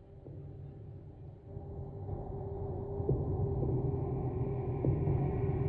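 A deep electronic drone hums and slowly swells louder.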